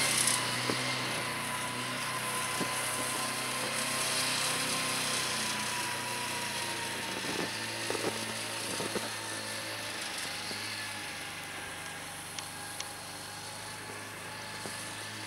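A snowmobile engine drones steadily nearby, slowly fading as it moves away.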